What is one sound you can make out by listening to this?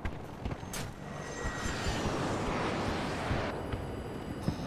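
A jet roars past overhead.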